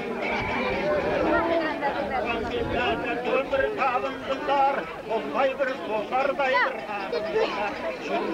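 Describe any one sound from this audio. A crowd of women and children chatters and calls out outdoors.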